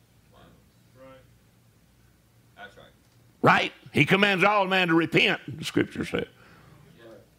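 An elderly man preaches into a microphone, shouting with passion.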